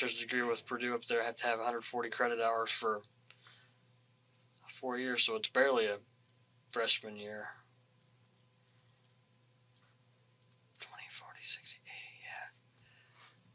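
A man speaks in short bursts, heard through a room microphone.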